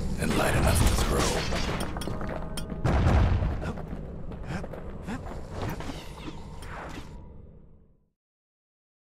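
Blades slash and strike with sharp, clattering hits.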